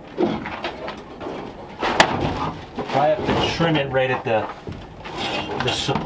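A sheet of metal rattles as it is slid into place.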